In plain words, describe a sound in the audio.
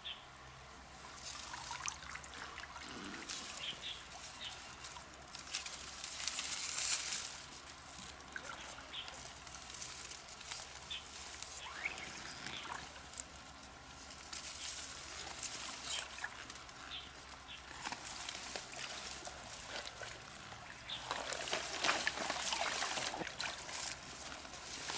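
Dry reeds rustle and crackle.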